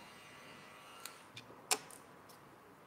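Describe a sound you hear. A cape's fastener clicks shut.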